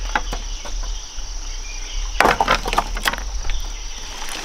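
Wooden sticks clatter onto a pile of branches.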